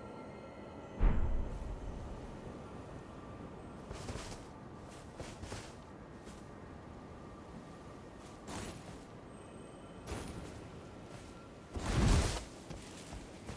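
A heavy blow crashes with a loud thud.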